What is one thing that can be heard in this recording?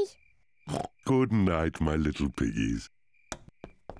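A man speaks in a deep voice.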